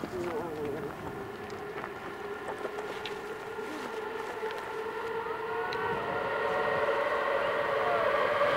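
Footsteps crunch on loose stones.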